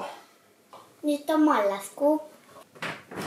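A young girl speaks briefly, close by.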